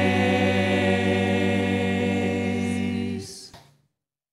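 A group of men and women sing together through microphones in a reverberant hall.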